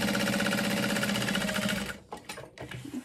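A sewing machine stitches rapidly.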